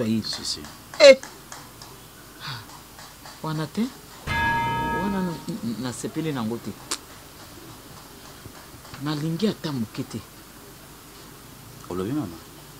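A woman speaks close by in an upset, tearful voice.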